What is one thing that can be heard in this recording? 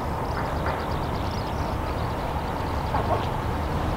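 A truck drives past close by.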